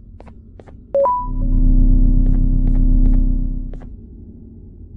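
Lights power down with a loud low hum.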